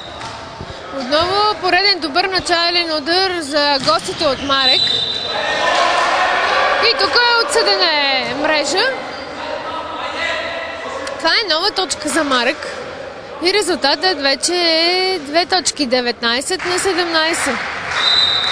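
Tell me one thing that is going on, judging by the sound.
A crowd of spectators chants loudly in unison.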